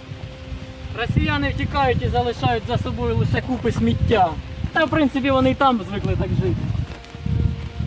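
A man speaks calmly nearby, outdoors.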